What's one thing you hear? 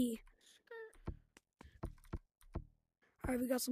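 Keys click as they are tapped on a keyboard.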